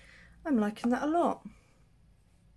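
A young woman speaks briefly and calmly, close to a microphone.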